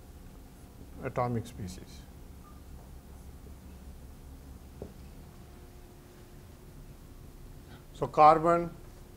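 An older man speaks in short bursts in a quiet room.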